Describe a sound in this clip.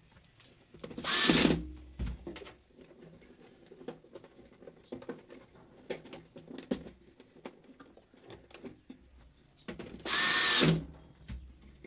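A power screwdriver whirs in short bursts.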